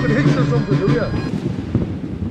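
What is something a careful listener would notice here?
A young man speaks with animation into a microphone outdoors.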